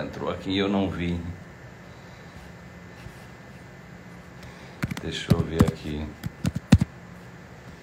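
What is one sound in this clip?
A middle-aged man speaks calmly into a nearby microphone.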